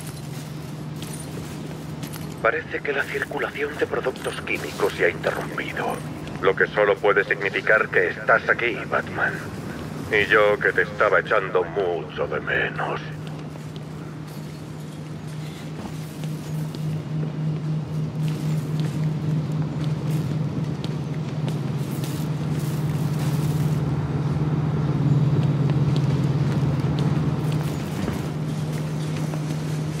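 Heavy footsteps walk on a hard floor.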